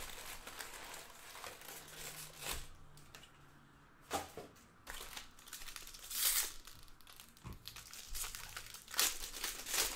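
Foil packs rustle as they are handled.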